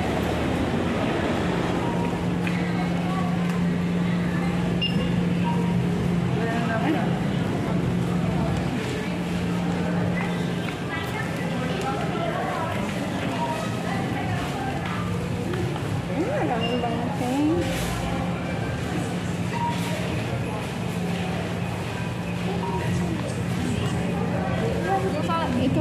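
A crowd of people chatters indistinctly in the background.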